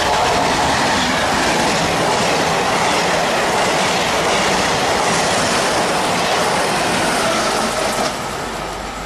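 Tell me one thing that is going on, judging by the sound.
A passenger train rushes past close by, its wheels rumbling on the rails.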